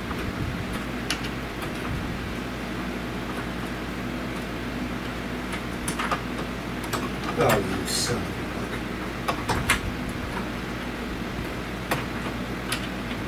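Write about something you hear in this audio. Metal tools clink and tap against an engine.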